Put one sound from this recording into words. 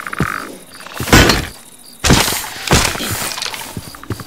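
A sword strikes a rattling skeleton.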